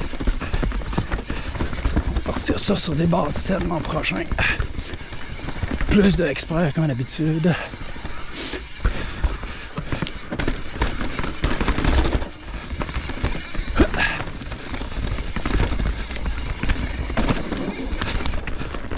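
A bike's frame and chain rattle over bumps and roots.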